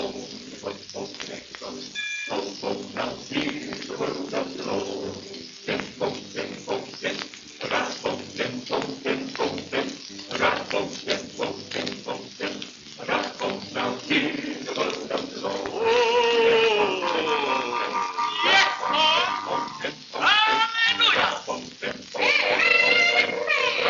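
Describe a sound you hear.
An old record plays music with a choir singing, heard through crackling surface noise.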